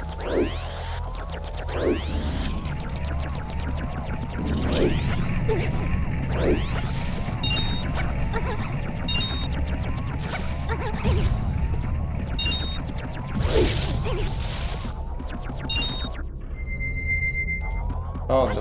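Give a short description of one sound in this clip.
Upbeat video game music plays.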